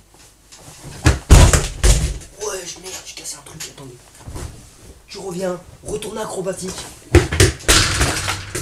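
A person jumps heavily on a bed with soft, heavy thumps.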